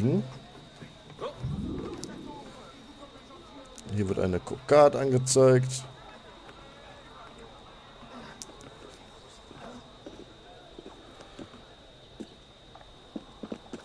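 Hands and feet thud and scrape against wooden walls during a climb.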